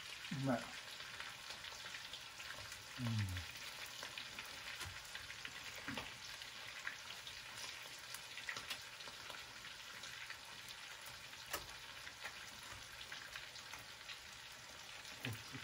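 A metal utensil clinks against a pan.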